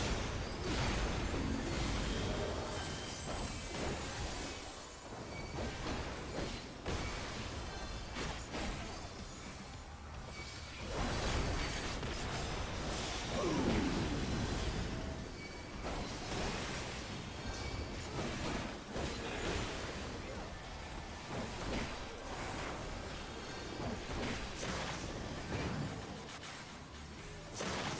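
Magic blasts and impacts crash and whoosh in a battle.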